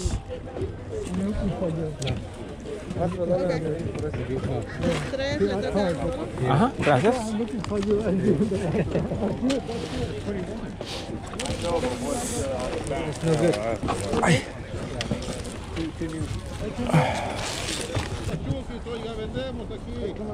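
People chatter all around outdoors.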